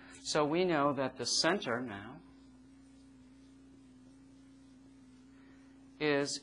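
A middle-aged man speaks calmly, close to a microphone.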